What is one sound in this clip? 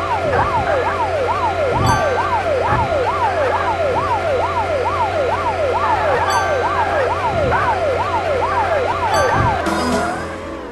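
A siren wails rapidly up and down.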